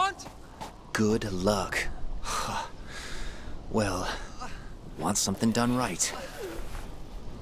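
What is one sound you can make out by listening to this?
A man speaks with a rough voice.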